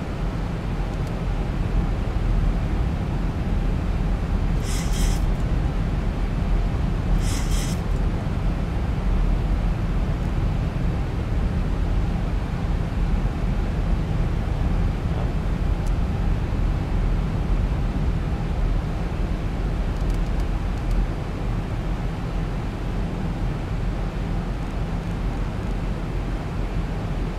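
Jet engines drone steadily with a deep rumble.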